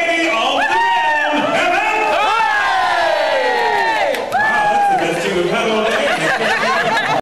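A crowd cheers and whoops loudly close by.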